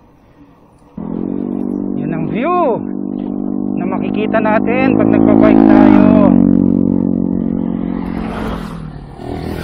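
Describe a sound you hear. A motorcycle engine hums and revs up and down up close.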